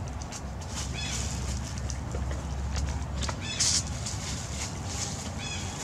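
A young monkey gives high squeaks.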